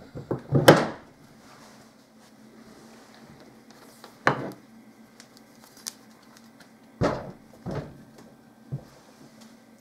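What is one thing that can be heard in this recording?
Metal parts knock and clunk against each other as they are handled.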